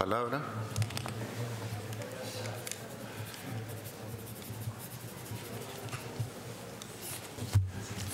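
A crowd murmurs quietly in a large hall.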